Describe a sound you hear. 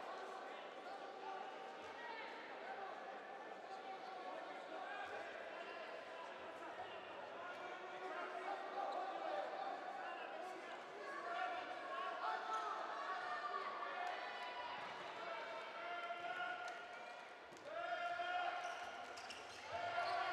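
A large crowd cheers and chants in an echoing indoor hall.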